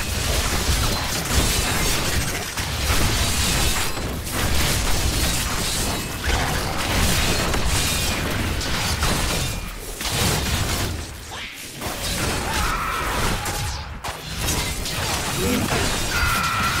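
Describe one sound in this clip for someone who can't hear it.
Fiery spell blasts and impacts crash in a video game battle.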